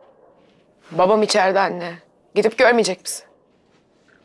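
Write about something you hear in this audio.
A young woman speaks urgently close by.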